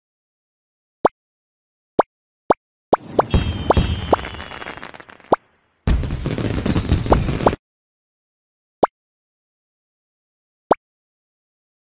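Short game menu clicks and chimes sound.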